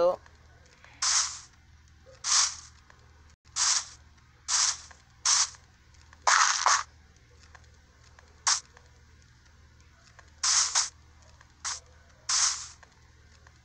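Footsteps crunch on grass in quick, uneven bursts.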